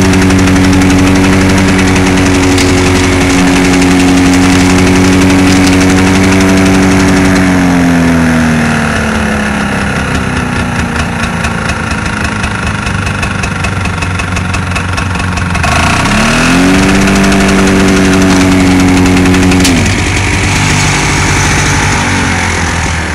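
A lawnmower engine runs loudly close by, its pitch dropping and rising as it slows and revs up again.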